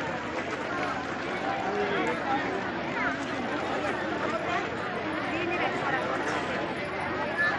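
A large crowd of women chatters and calls out outdoors.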